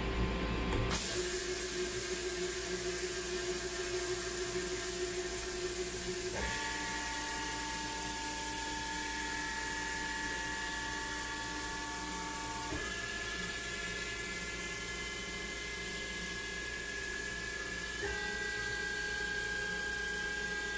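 A machine spindle whirs with a steady whine that jumps up in pitch in steps.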